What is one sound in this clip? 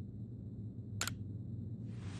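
A short, bright menu click sounds.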